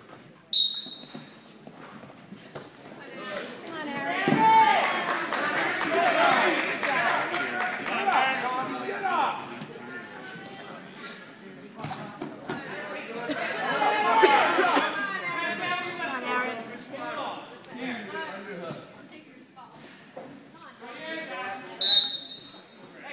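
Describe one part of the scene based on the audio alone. A referee blows a sharp whistle in an echoing gym.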